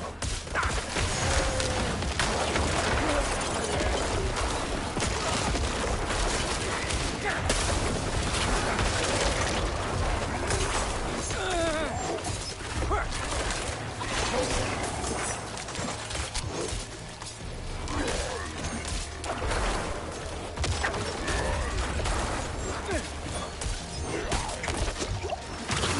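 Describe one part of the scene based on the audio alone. Weapons clash and magic blasts burst in a fast, busy fight.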